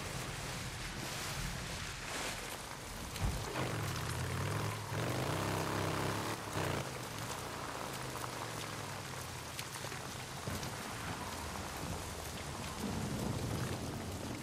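Tyres splash through puddles and mud.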